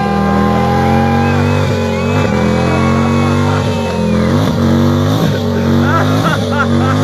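A motorcycle engine revs hard during a burnout.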